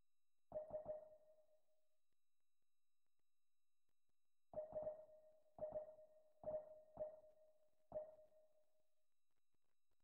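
Short menu chimes ring out as selections change.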